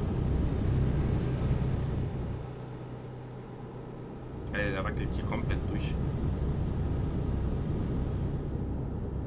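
Tyres roll on the road with a steady hum.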